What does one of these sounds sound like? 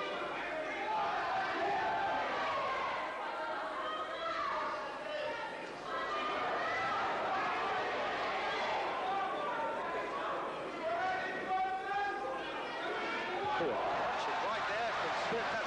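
A crowd murmurs and cheers in a large hall.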